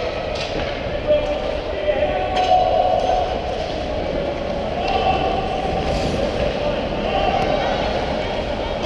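Ice skates scrape and glide across ice in a large echoing rink.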